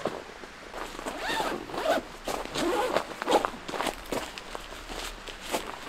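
Tent fabric rustles and crinkles close by.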